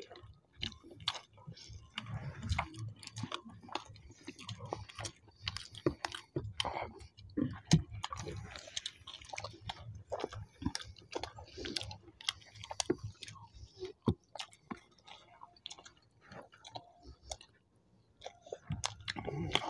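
A man and a woman chew and smack their food loudly and close up.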